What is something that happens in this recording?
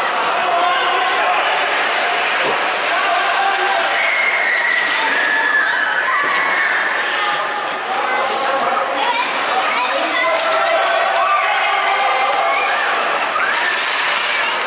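Young children shout and call out across an echoing ice rink.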